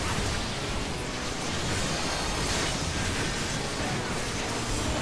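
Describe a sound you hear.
Magical spell effects whoosh and burst in a busy battle.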